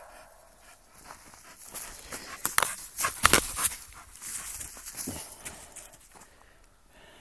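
Dry grass rustles and crunches close by.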